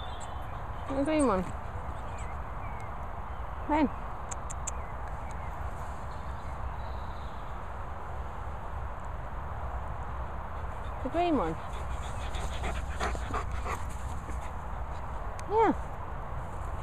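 A dog barks in short, sharp yelps.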